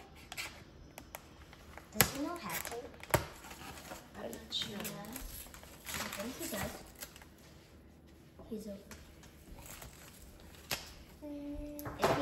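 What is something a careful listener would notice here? Paper crinkles and rustles.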